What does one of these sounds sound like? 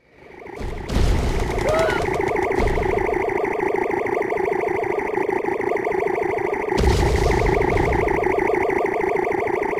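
A laser beam weapon hums with a steady pulsing buzz.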